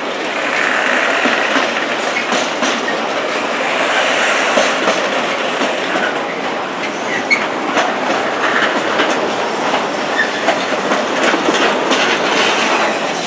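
A freight train rumbles past steadily, its wheels clicking and clattering on the rails.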